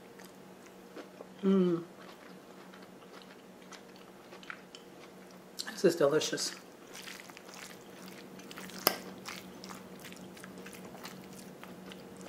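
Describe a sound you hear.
A fork scrapes and clinks against a ceramic bowl.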